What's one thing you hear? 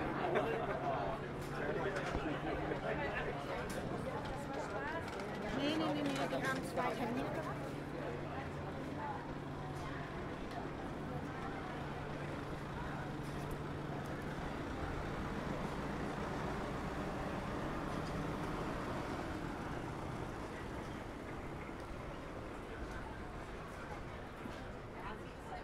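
A busy crowd chatters outdoors.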